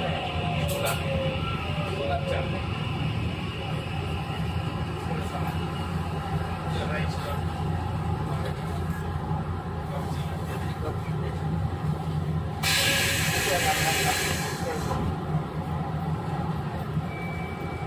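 An electric train hums steadily nearby.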